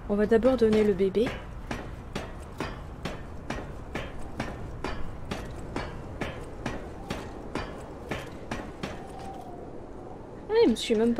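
Footsteps clatter on metal rungs.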